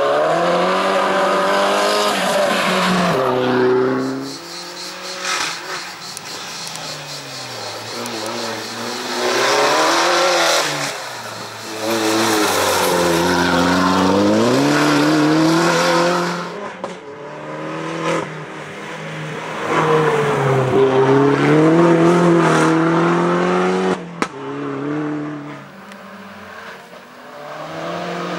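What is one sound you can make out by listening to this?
A racing hatchback's engine revs hard through a slalom, rising and falling in pitch with each gear change.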